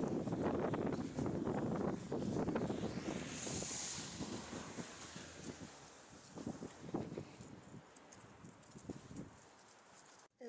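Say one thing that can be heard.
A dog's paws rustle through grass and dry leaves.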